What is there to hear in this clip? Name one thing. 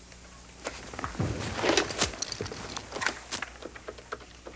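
Papers rustle and shuffle close by.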